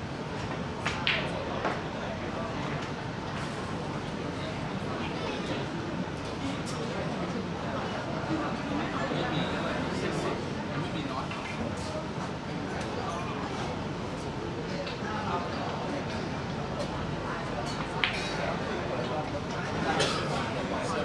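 Snooker balls knock together with a sharp clack.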